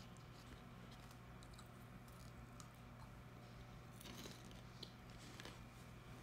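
A young woman crunches a crisp snack close by.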